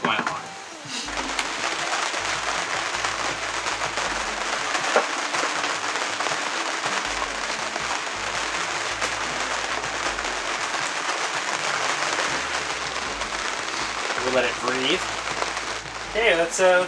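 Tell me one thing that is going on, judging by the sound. Rain patters steadily on a boat's canopy.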